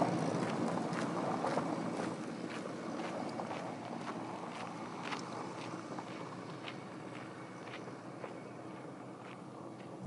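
Footsteps crunch on gravel and slowly move away.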